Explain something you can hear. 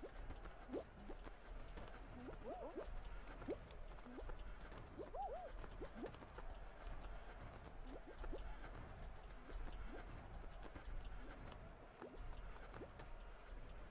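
Short springy boing sounds play as a game character jumps.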